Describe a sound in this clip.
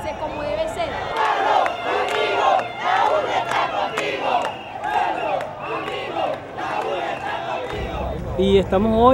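Young people clap their hands in rhythm.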